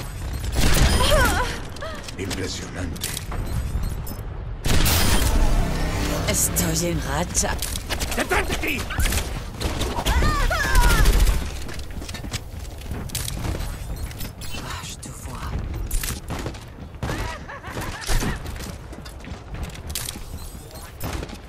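A rifle fires bursts of rapid shots.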